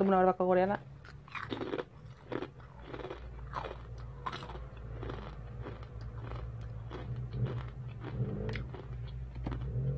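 A young woman crunches chips while chewing.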